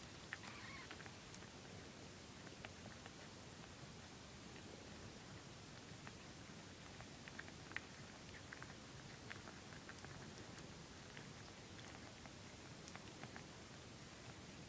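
A cat licks its fur up close with soft, wet clicking sounds.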